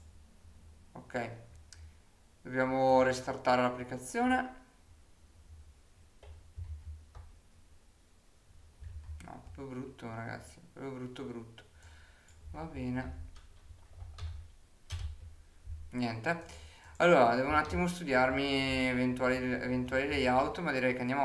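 A young man talks calmly and close to a microphone, in bursts with pauses.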